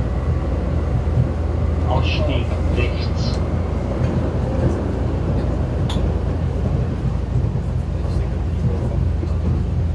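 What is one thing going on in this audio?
A subway train rumbles along the tracks with a low, steady roar.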